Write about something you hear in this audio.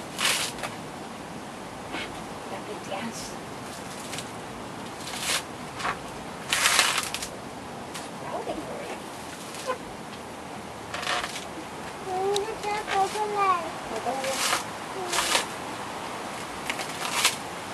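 A wooden pole thuds and scrapes repeatedly against something on the ground.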